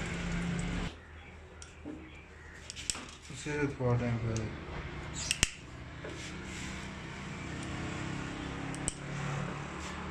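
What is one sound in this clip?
A metal tool clicks and scrapes against metal parts.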